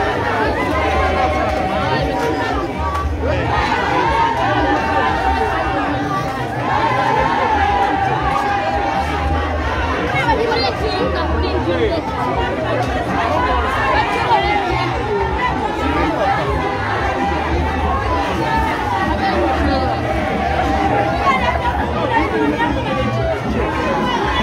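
A dense crowd of men and women talks and calls out all around, close by.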